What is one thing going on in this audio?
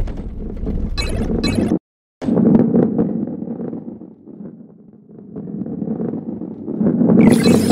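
A heavy ball rolls along a wooden track with a low rumble.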